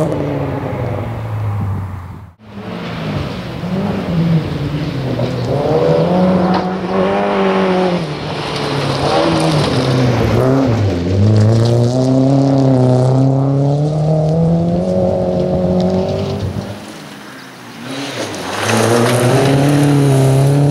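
A rally car engine roars at high revs, rising and falling as it shifts gears.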